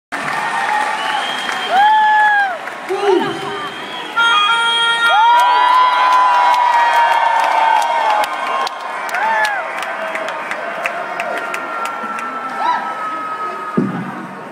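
A man sings into a microphone through loud speakers.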